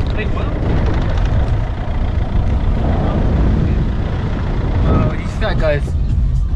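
Wind rumbles and buffets loudly around a moving car.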